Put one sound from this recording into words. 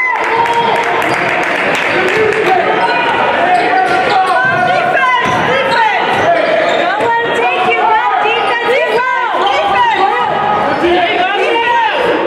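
A man shouts from the sideline.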